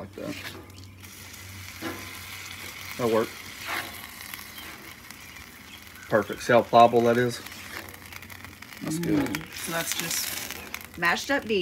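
Food sizzles softly in a hot pan.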